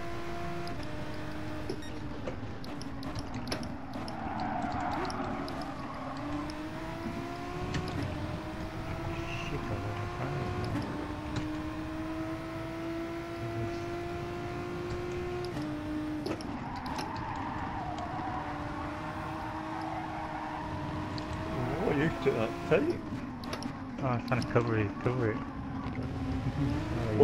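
A racing car engine roars and shifts gears as it speeds around a track.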